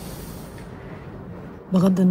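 A young woman whispers close by.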